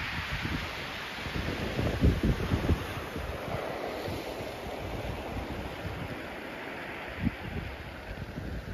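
Small waves wash gently onto a pebble beach.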